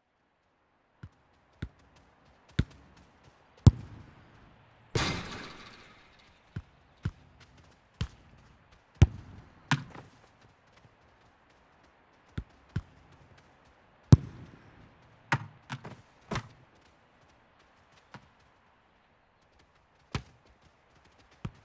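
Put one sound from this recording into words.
A football is kicked on grass.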